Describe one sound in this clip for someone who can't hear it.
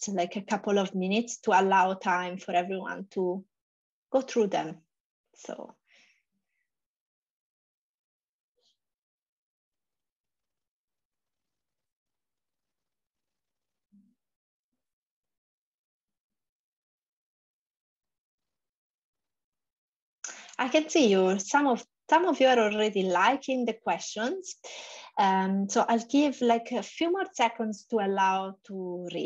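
A woman talks calmly over an online call.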